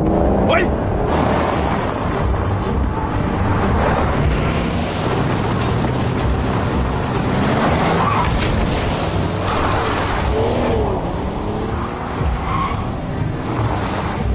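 Car engines roar loudly.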